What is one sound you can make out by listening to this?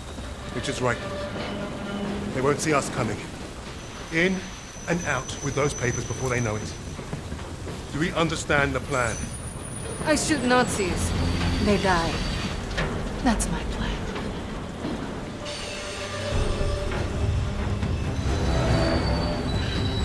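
Heavy rain pours and splashes steadily.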